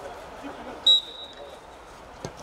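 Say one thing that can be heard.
A referee's whistle blows once, short and sharp.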